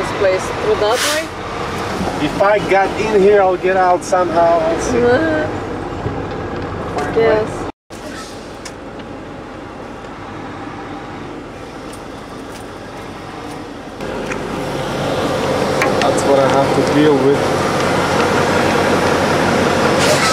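A large truck engine rumbles steadily.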